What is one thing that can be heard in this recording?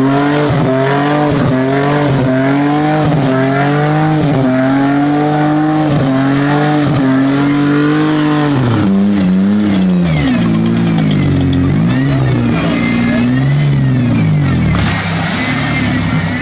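Mud splashes and sloshes under tyres.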